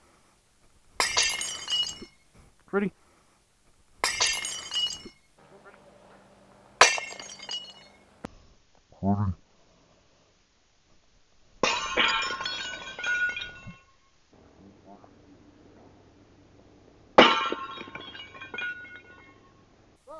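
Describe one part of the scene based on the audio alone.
A small object crashes and clatters onto loose rocks and gravel.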